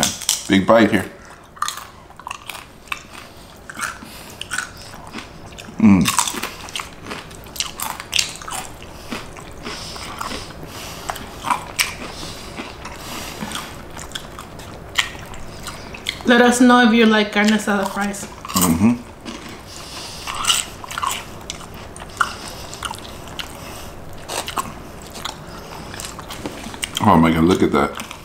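A young man makes pleased humming sounds while eating.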